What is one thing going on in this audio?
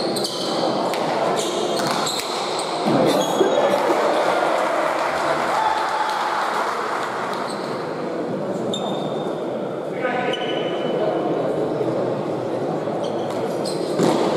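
A hard ball smacks against the wall and floor, echoing through a large hall.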